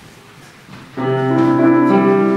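A piano plays along.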